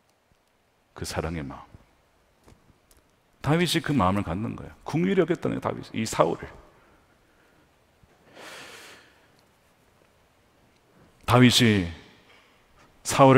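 A man speaks with emphasis through a microphone, in phrases broken by pauses, in a large reverberant hall.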